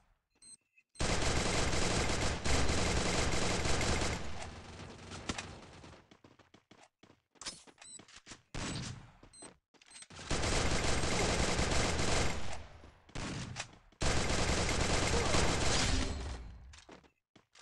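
A submachine gun fires rapid bursts up close.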